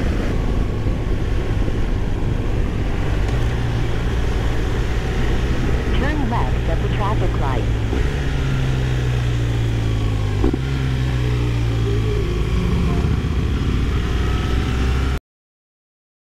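A motorcycle engine hums steadily as it rides.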